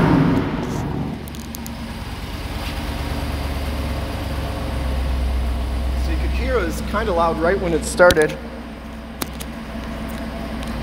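An engine idles with a low steady rumble from the exhaust.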